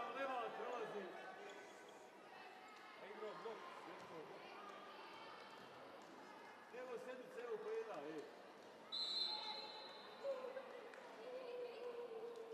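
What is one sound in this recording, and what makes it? Volleyball players call out to each other in a large echoing hall.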